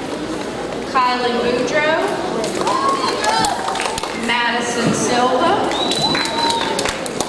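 A woman speaks into a microphone over a loudspeaker in a large echoing hall.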